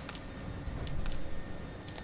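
An electric spark crackles briefly.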